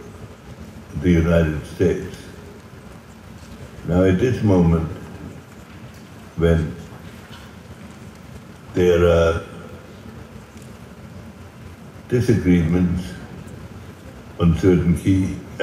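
An elderly man speaks slowly and calmly over an online call, with long pauses.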